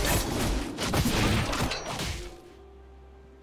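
Magic spells whoosh and crackle in a game fight.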